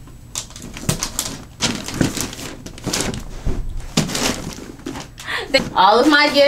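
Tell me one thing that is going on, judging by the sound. Wrapping paper rustles and crinkles as it is folded.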